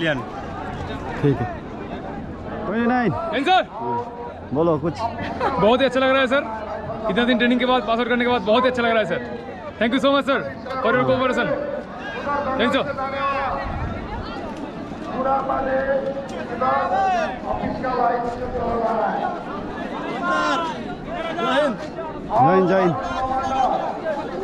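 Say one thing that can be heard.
A young man speaks calmly close by, outdoors.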